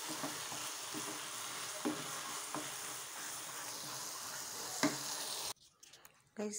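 Food sizzles and hisses in a hot frying pan.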